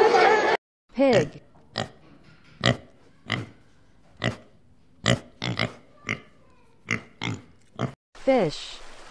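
Piglets squeal in short bursts.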